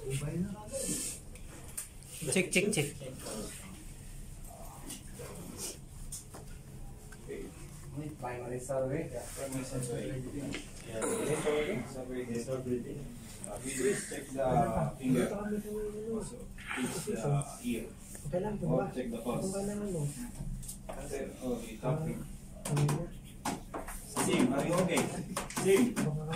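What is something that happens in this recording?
A man speaks calmly to a small group in a room.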